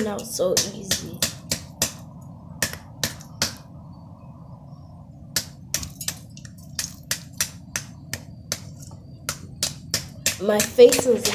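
A hammer taps sharply on a hard object again and again.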